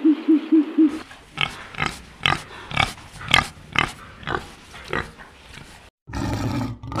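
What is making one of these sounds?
A pig slurps and laps water.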